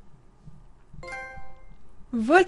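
A bright chime rings out briefly.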